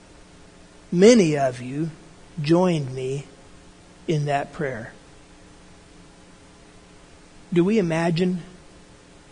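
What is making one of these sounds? An older man speaks with animation, close to the microphone.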